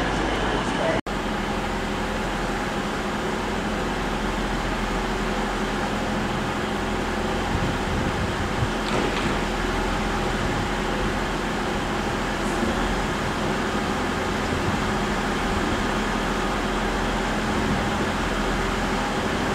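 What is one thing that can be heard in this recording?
A diesel train engine idles with a steady low hum.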